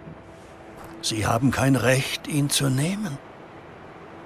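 An elderly man speaks with urgency, close by.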